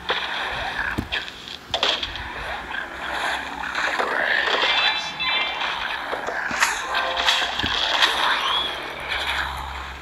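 Game plants fire shots that pop and splat against zombies.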